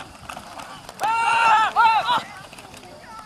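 Young players shout across an open field.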